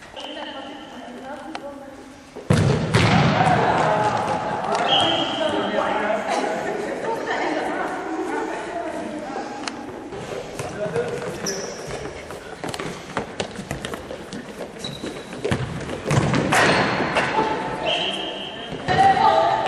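A ball thuds as girls kick it on a hard floor.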